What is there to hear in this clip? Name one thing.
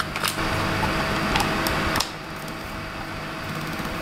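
A plug clicks into a socket.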